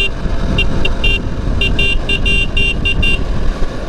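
A truck rumbles by close alongside.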